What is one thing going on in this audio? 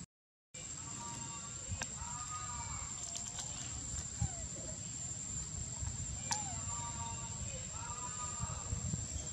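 A baby monkey squeaks and whimpers softly.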